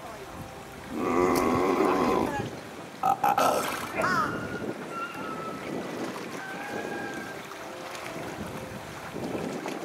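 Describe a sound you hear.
Seals call out with loud, moaning grunts close by.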